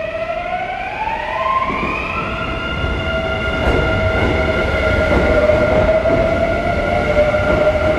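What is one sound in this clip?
Train wheels rumble and clatter over the rails, growing louder.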